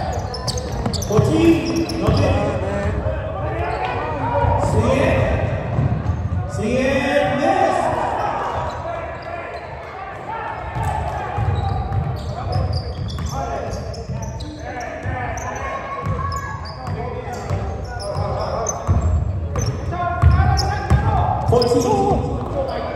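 Men shout and call out to each other across an echoing gym.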